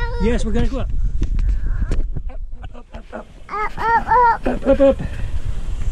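A young child shouts and squeals up close.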